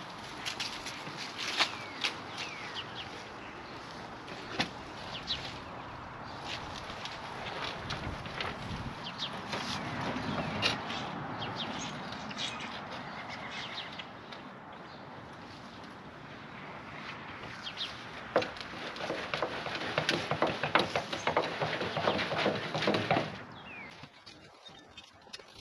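A wheelbarrow rattles and clanks as it is pushed over grass.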